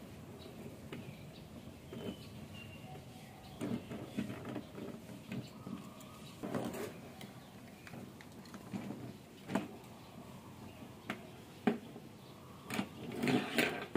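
A screwdriver clicks and scrapes against a plastic game controller.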